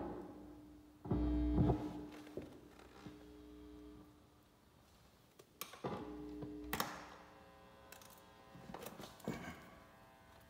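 A piano plays notes that ring out in a large echoing hall.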